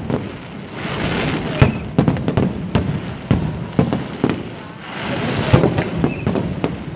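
Fireworks crackle and sizzle in the air.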